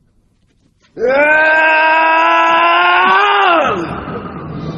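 An elderly man cries out loudly in a long, sustained shout.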